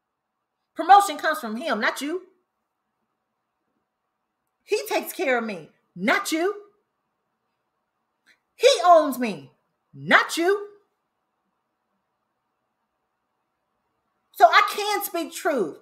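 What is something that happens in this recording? A young woman speaks calmly and close to a microphone, in short phrases with pauses.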